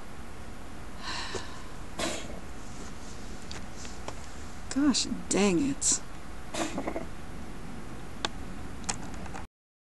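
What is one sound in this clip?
A young woman speaks softly and close to a microphone, with short pauses.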